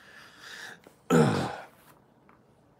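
A man sighs heavily.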